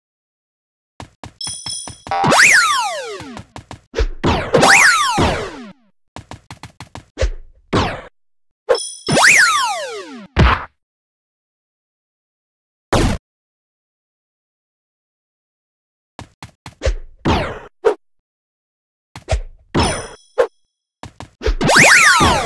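Bright electronic game effects sweep downward in pitch, again and again.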